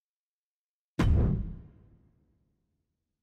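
A game menu plays a loud whooshing swell as it changes.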